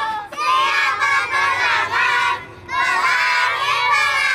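A group of children sing together nearby.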